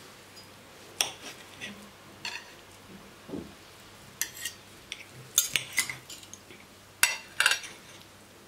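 Metal cutlery clinks and scrapes against plates.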